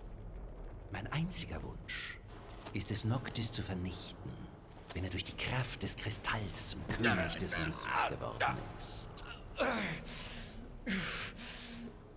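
A man speaks in a slow, menacing voice.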